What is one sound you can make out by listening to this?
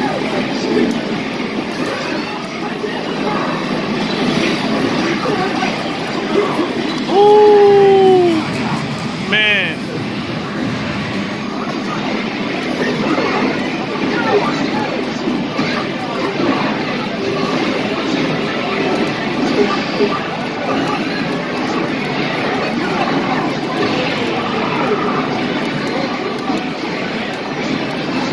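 A busy arcade hums with a steady noisy din of other machines.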